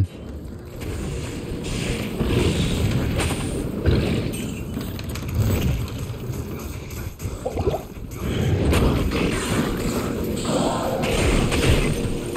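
Spells burst with crackling hisses.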